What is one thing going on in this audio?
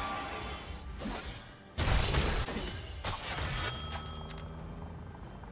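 Magic blasts burst and crackle in a fight.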